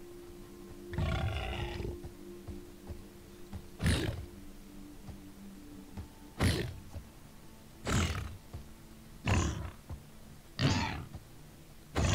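A large beast grunts and snorts.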